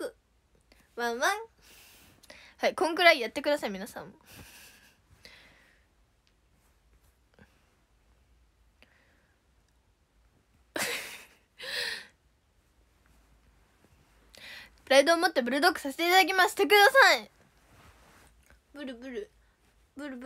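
A young girl talks close to a microphone with animation, in short bursts.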